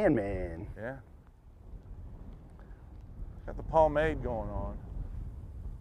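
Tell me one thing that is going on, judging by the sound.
A man speaks casually close by, outdoors.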